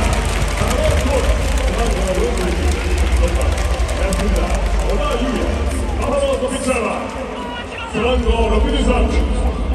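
A crowd cheers and chants in a large echoing stadium.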